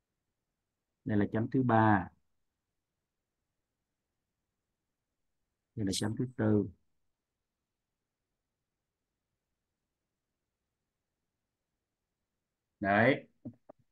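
A man speaks calmly in short phrases through an online call.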